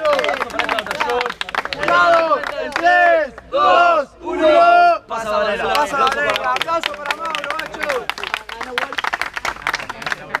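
Hands clap rapidly.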